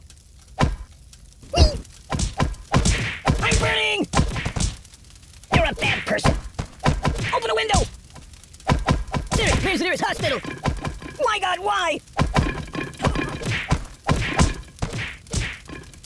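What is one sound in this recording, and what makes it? A bat thumps repeatedly against a ragdoll.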